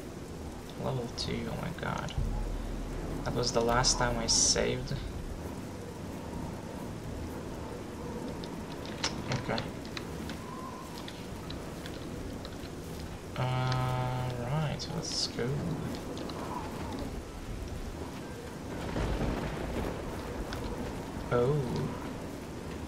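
A young man speaks casually into a headset microphone, close by.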